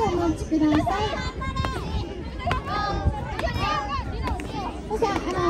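A jump rope slaps the ground in a steady rhythm.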